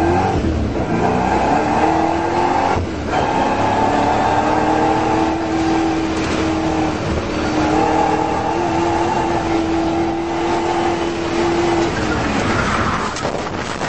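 A car engine hums steadily from inside the car as it drives along a winding road.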